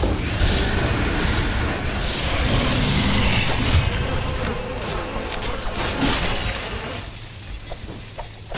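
Magic spells and weapon strikes crackle and clash in a hectic fight.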